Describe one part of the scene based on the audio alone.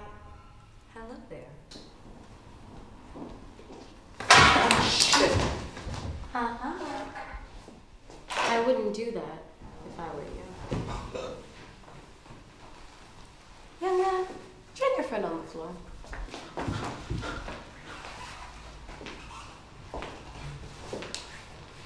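A young woman speaks in a low voice nearby.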